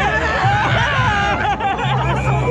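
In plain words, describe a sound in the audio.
A young man shouts excitedly close by.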